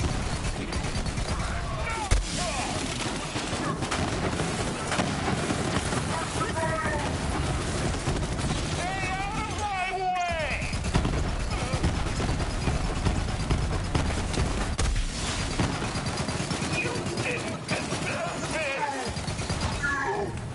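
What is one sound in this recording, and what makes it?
Rapid gunfire rattles and bangs.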